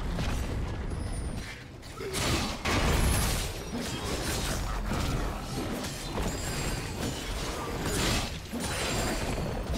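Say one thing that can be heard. Game spell effects whoosh and blast during a fight.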